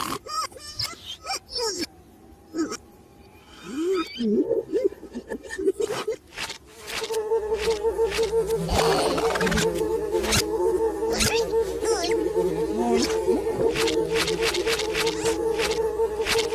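A glass bowl knocks and clatters against scrap metal.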